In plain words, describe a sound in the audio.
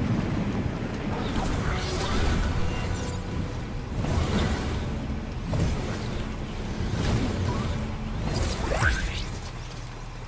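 Wind rushes loudly in gusts.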